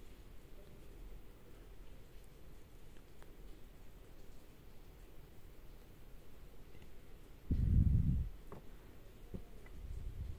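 Fingers rub and press softly on a plastic film.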